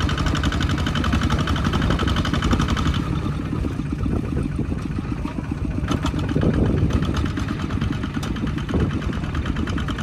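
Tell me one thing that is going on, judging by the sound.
A small diesel engine chugs loudly and steadily close by.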